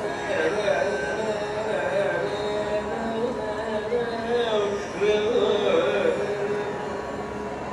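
A violin plays a winding melody close by.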